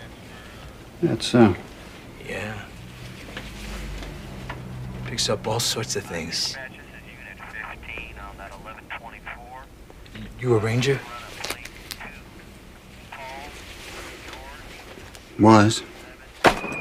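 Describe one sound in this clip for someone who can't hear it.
A man speaks in a low, quiet voice nearby.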